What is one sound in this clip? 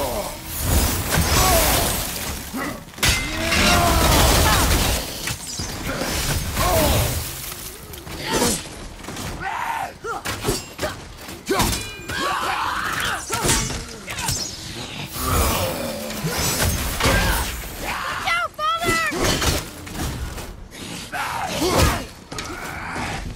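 Weapons clash and strike in a fierce fight.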